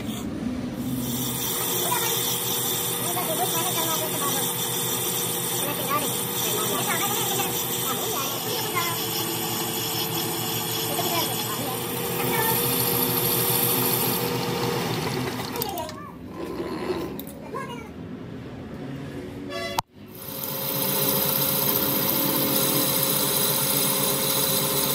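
A lathe motor hums and whirs steadily.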